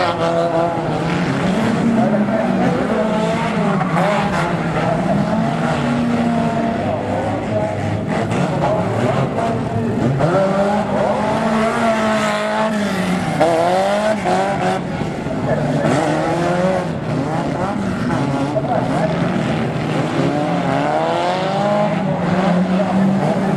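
Banger race car engines rev hard.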